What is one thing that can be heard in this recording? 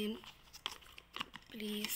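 A plastic jar lid taps and scrapes under a hand.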